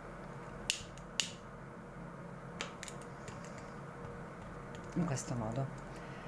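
Scissors snip through cord.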